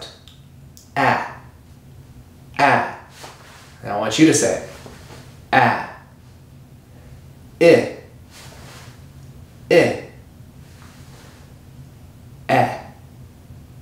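A man speaks close by, clearly and loudly, saying short sounds one at a time with pauses between them.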